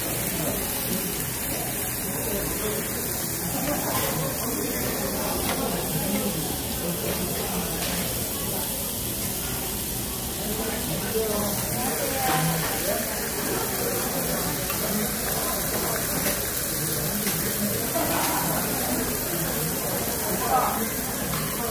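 Meat sizzles steadily on a hot grill.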